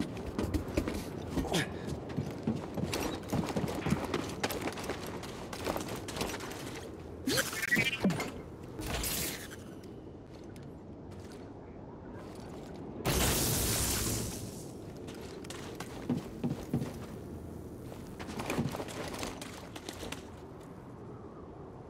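Footsteps crunch quickly over gravel and rubble.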